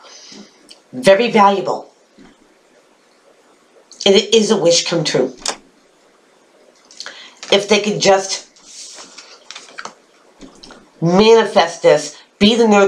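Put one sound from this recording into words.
A woman talks calmly and close to a microphone, in short bursts with pauses.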